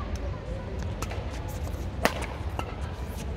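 A badminton racket strikes a shuttlecock with a sharp pop.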